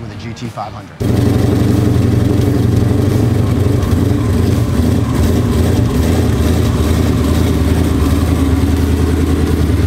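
A sports car engine idles with a deep, steady rumble indoors.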